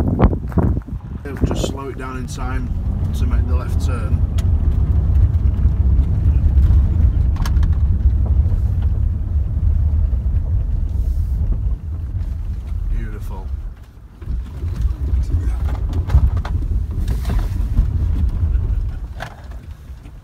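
A car engine rumbles low as the car drives along a gravel track.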